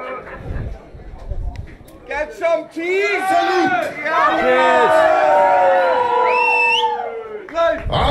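A man talks into a microphone through loudspeakers.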